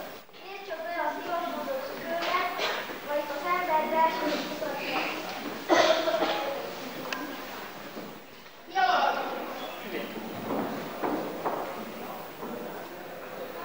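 Children speak their lines loudly in an echoing hall.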